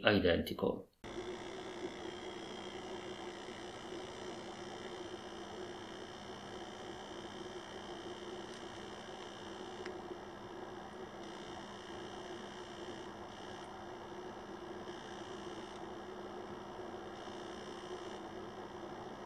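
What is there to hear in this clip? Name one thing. A loudspeaker gives off a steady low hum.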